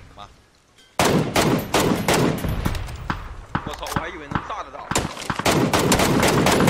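Rifle shots crack in quick succession.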